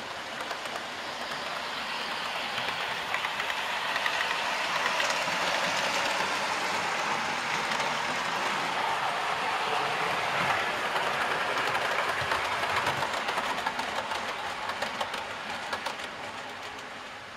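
A model electric train rumbles along the track, growing louder as it comes closer and then fading.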